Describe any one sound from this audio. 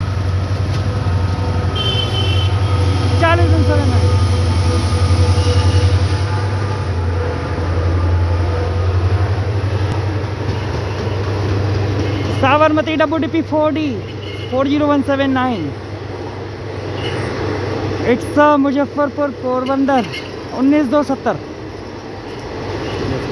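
A train rumbles past close by, its wheels clattering on the rails.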